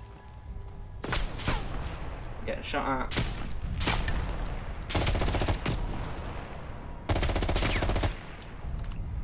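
A rifle fires loud bursts of shots close by.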